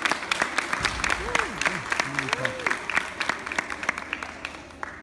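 A large crowd of children applauds in a big echoing hall.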